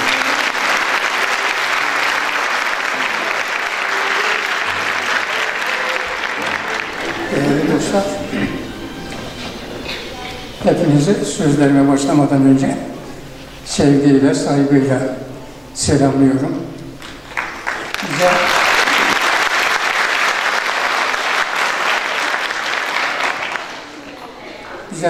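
A large audience applauds steadily in an echoing hall.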